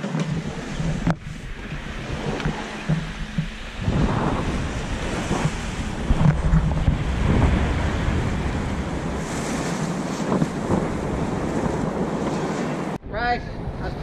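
Strong wind roars across a microphone outdoors.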